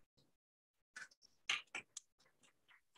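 A woman claps her hands briefly.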